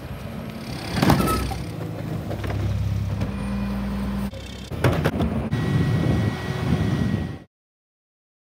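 A wheelie bin bangs and clatters as a truck's lifter tips it.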